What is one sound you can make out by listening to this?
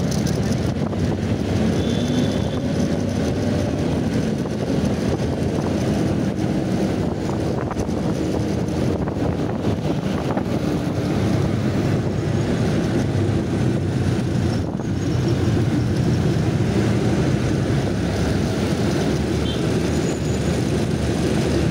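A motorcycle engine hums steadily up close while riding.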